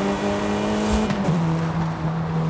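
A turbocharged four-cylinder sports sedan engine shifts up a gear and the revs drop.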